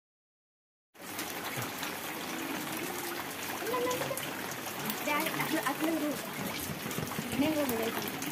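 Water splashes softly in shallow puddles.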